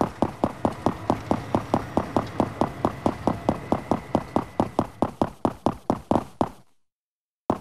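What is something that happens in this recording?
Quick footsteps run over stone paving.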